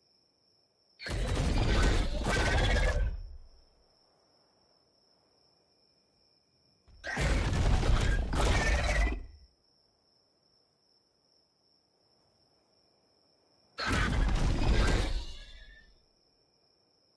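A large creature lets out a loud, deep roar three times.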